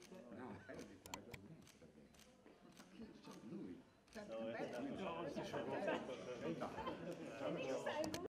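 Men and women chat and laugh nearby, getting livelier partway through.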